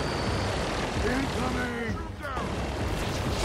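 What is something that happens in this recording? A man speaks in a gruff, strained voice.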